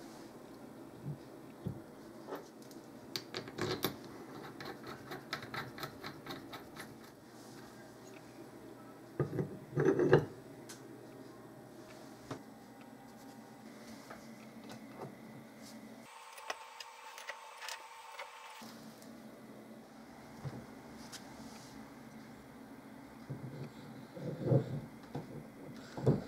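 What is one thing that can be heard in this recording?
Metal parts clink and click as they are fitted together by hand.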